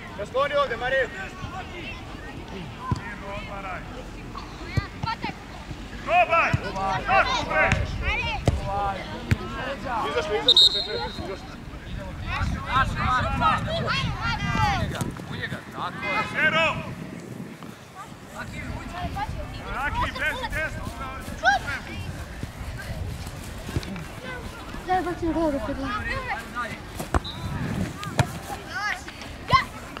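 Young boys shout and call out to each other outdoors.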